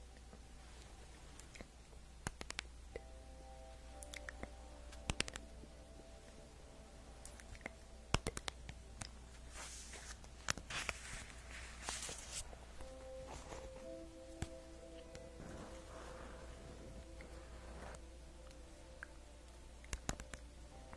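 A young woman whispers softly and close to a microphone.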